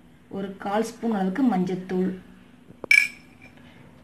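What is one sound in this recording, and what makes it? A metal spoon taps lightly against a bowl.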